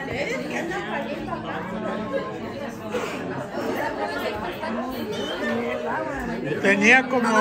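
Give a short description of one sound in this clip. Several adults chat and talk over one another close by, indoors.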